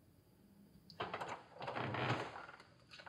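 A door handle turns and a door opens.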